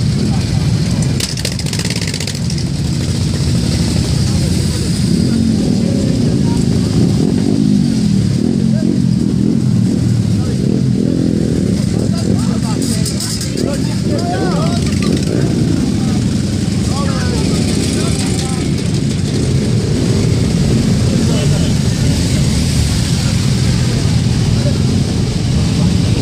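Many motorcycle engines rumble and idle close by.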